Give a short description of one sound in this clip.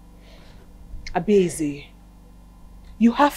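A woman speaks firmly and closely.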